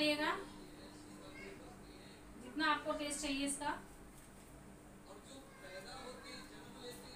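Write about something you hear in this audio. A woman talks.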